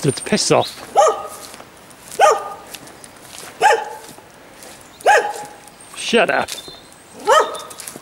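A dog barks in short, repeated yelps outdoors.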